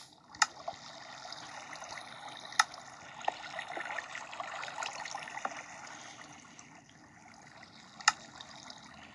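A game menu gives short clicks.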